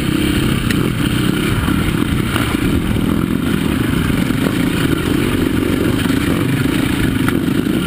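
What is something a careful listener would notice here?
A dirt bike engine roars steadily up close.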